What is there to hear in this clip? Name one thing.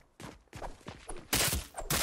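A pickaxe swings and strikes metal.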